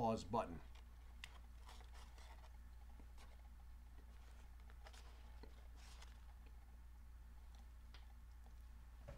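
A man crunches and chews food.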